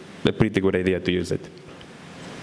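A young man speaks into a microphone in a large echoing room.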